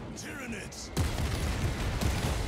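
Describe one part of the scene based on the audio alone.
Gunfire rattles loudly.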